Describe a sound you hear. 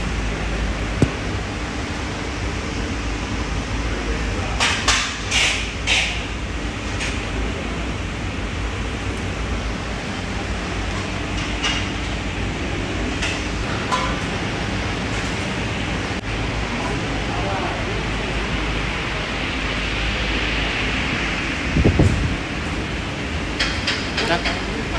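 Metal clanks and knocks as a man works on a machine.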